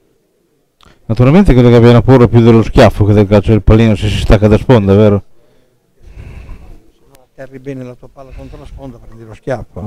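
A man talks loudly and animatedly close by.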